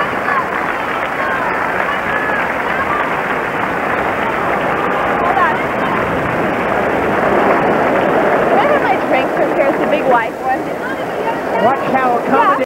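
A large crowd in a stadium cheers and claps loudly.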